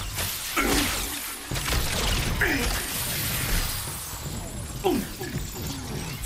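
Explosions boom and crackle in a game.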